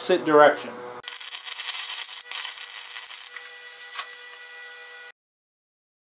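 A welding torch crackles and hisses steadily.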